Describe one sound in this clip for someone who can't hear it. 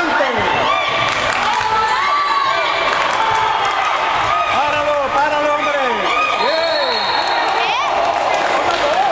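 A basketball bounces on the floor.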